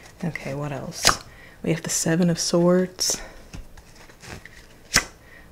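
Cards shuffle and slap onto a table.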